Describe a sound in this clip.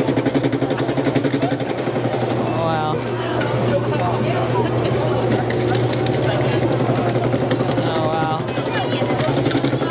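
A sugarcane press machine hums and grinds steadily.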